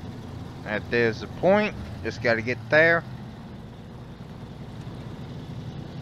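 A truck engine rumbles steadily at idle.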